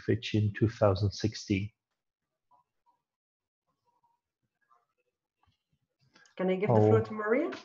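A woman speaks calmly through an online call, in short bursts with a pause between.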